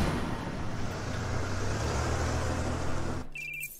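A car engine rumbles as the car approaches in an echoing space.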